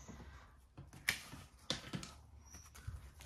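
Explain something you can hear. Paper banknotes rustle as they are handled.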